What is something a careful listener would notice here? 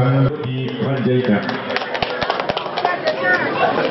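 A man speaks loudly to a crowd.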